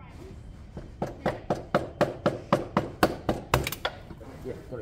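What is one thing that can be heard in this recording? A ratchet wrench clicks quickly on a motorcycle bolt.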